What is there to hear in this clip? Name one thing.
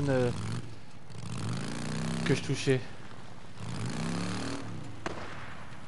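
A motorcycle engine revs as it rides off.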